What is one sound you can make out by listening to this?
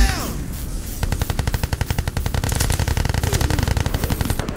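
A gun fires rapidly in a long burst.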